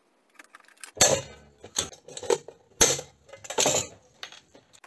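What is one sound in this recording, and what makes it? Metal clanks and knocks against a wooden surface.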